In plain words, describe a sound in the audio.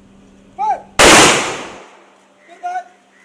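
Rifles fire a loud volley together.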